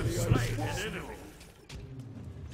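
Weapons clash and magic effects burst in a fight.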